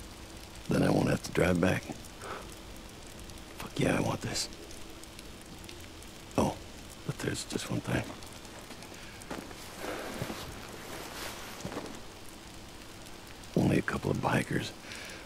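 A man talks through a headset microphone in short bursts.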